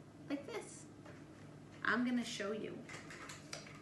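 A woman speaks briefly and calmly, close by.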